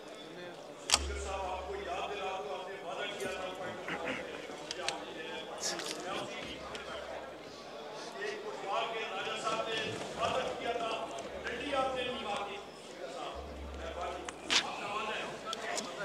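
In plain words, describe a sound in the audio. A man speaks steadily into a microphone in a large hall.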